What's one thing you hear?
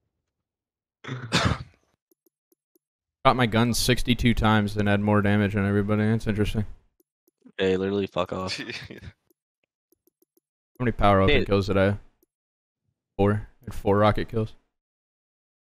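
A young man talks with animation into a microphone, close by.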